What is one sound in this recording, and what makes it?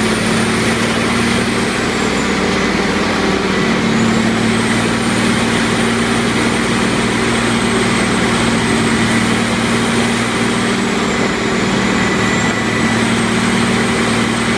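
Wood chips pour down from a conveyor with a steady hiss.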